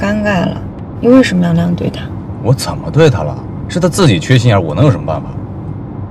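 A young man answers with animation.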